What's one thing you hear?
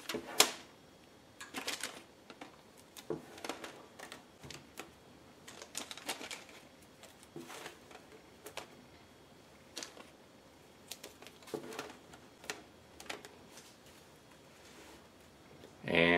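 Rubber bands snap and rustle as hands wrap bundled fabric.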